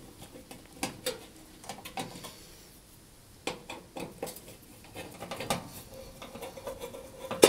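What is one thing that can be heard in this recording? Metal parts click and clink under hands at work.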